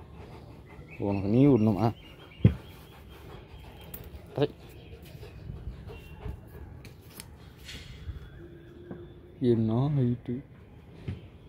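A dog whines in short wavering bursts.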